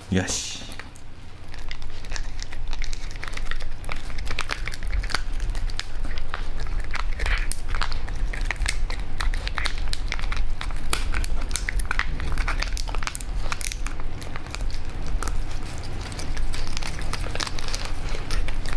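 Two small dogs gnaw and crunch on a dried chew close up.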